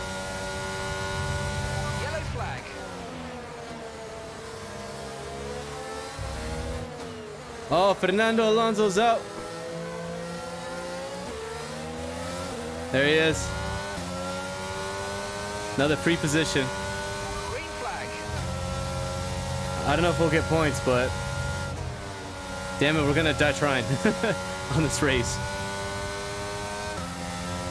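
A racing car engine whines steadily, rising and falling in pitch with gear changes.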